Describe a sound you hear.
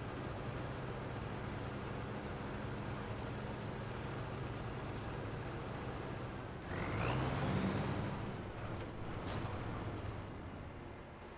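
A truck engine rumbles steadily as the truck drives slowly.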